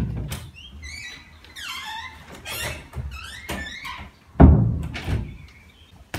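A door opens and shuts with a thud.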